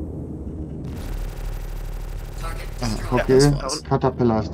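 Laser cannons fire in a rapid burst.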